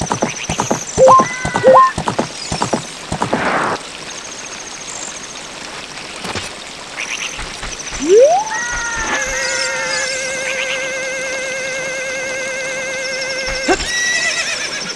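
A short chime plays from a game.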